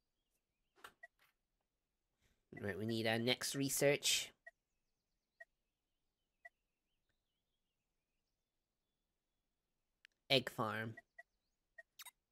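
Soft electronic menu blips sound now and then.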